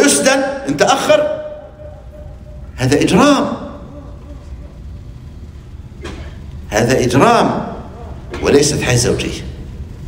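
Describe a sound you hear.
An elderly man speaks with animation in short bursts, his voice echoing in a large room.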